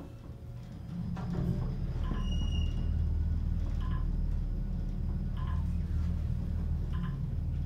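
An elevator car hums and rumbles steadily as it travels.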